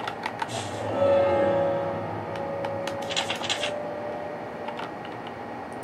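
A video game menu chimes and beeps as it opens.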